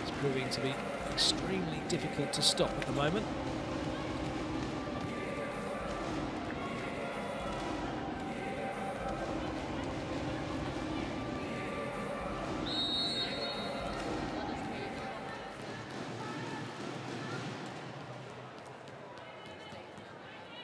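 A large crowd cheers and chatters in a big echoing arena.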